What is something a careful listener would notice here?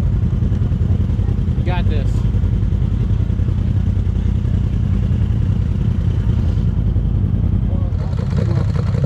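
An engine idles with a low, steady rumble.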